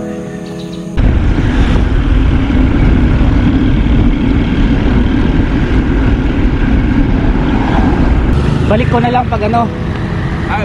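Wind roars loudly past a moving bicycle.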